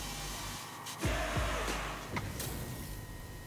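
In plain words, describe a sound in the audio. Video game sound effects whoosh and thump loudly.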